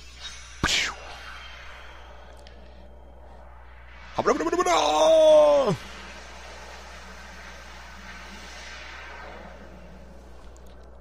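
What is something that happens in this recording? A soft shimmering hum swells and slowly fades.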